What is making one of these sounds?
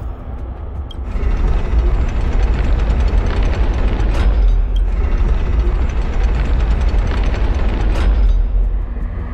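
A huge metal mechanism rumbles and grinds as it turns.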